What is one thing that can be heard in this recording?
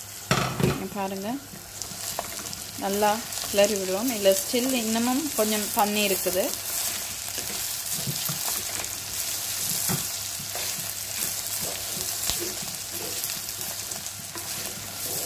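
A wooden spoon scrapes and stirs inside a clay pot.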